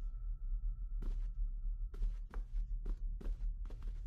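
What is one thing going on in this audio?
Footsteps thud on a wooden floor indoors.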